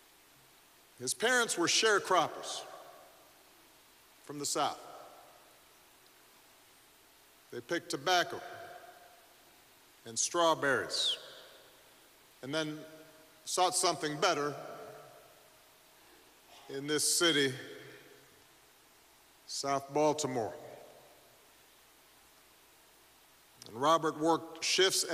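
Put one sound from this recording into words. A man speaks slowly and solemnly into a microphone in a large echoing hall, with long pauses.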